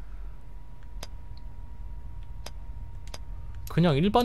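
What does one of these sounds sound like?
Short soft menu clicks tick now and then.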